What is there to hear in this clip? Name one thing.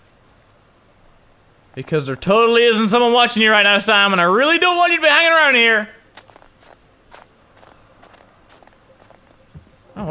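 Footsteps crunch softly on snow.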